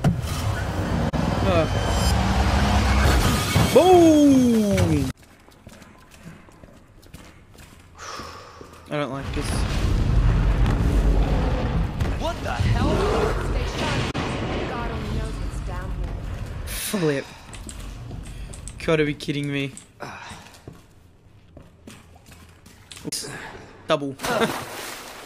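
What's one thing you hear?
A young man talks and laughs close to a microphone.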